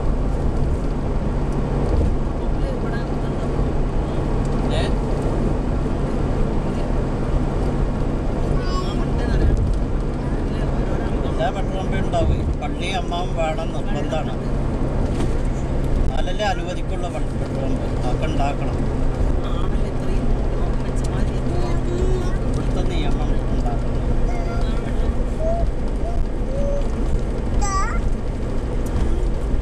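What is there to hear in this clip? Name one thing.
A car engine hums steadily, heard from inside the car.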